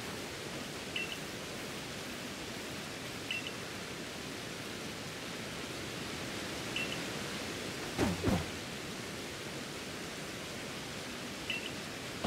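A short, high electronic blip sounds each time a line of game dialogue advances.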